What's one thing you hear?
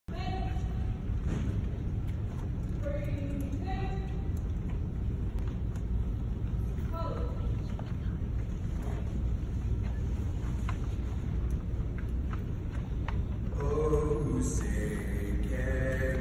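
A large crowd of men and women murmur and speak together, echoing in a large hall.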